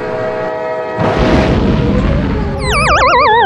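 A car crashes with a loud crunching impact.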